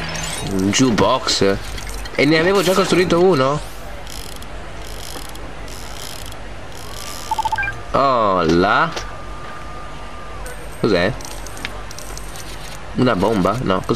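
Small coins scatter and clink.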